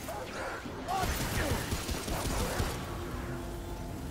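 Gunfire bursts out in quick shots.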